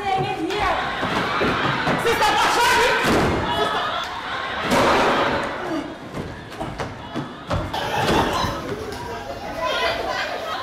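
A woman speaks loudly and with emotion in an echoing hall.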